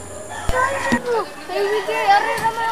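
Several men and women talk nearby outdoors.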